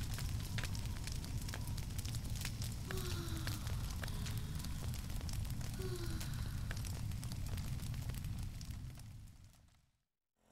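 A fire roars and crackles loudly.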